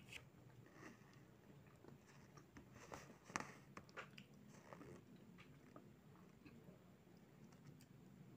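Crisp pastry crackles and crunches as hands handle it.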